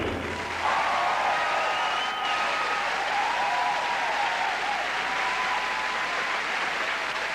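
A large audience cheers and whistles.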